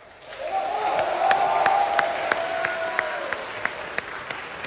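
A traditional orchestra plays a sustained chord that swells and then fades in a large hall.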